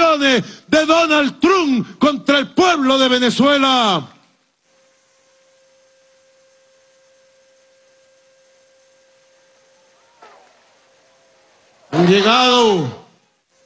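A man speaks forcefully into a microphone, heard through loudspeakers.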